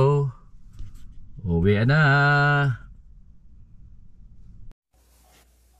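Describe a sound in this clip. A car engine idles with a low rumble.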